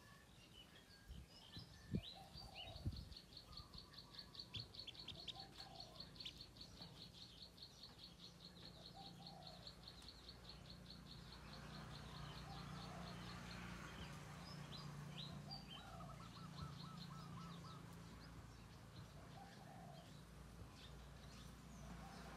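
Ducklings peep and cheep close by.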